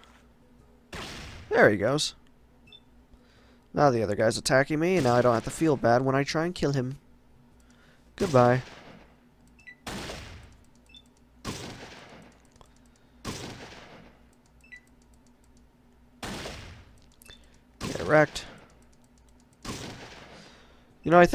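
Gunshots crack one at a time, each with a short ringing tail.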